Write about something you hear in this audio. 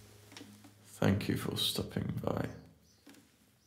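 A young man speaks quietly, close to a microphone.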